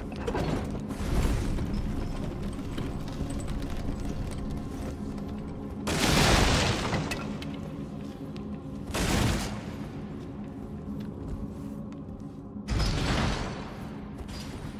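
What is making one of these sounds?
A body rolls heavily across gravel.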